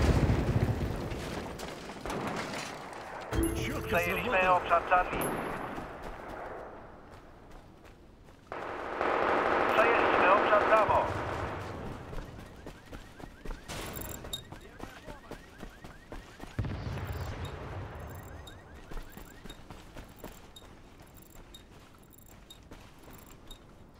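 Footsteps run over pavement and rubble.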